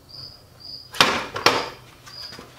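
Wooden boards knock against a workbench.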